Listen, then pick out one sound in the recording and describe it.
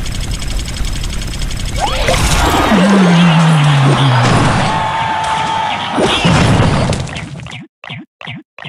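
Game battle effects clash and burst.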